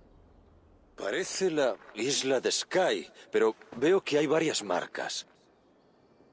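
A man speaks calmly in a deep voice, close to the microphone.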